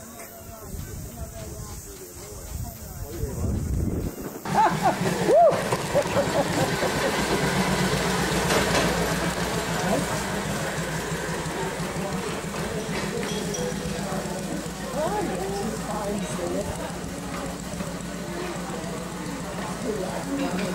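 Small iron wheels rumble and clatter along rails.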